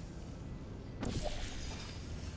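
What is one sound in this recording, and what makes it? A portal gun fires with a sharp electronic zap.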